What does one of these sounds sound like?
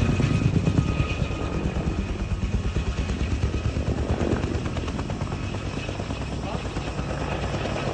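A helicopter's rotor thumps rapidly overhead and slowly moves away.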